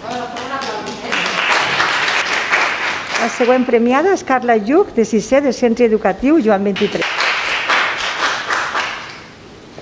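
People applaud.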